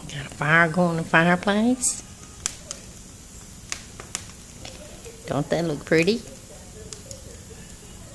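A wood fire crackles softly.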